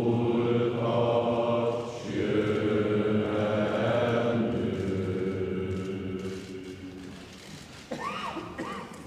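A large crowd sings together in a big echoing hall.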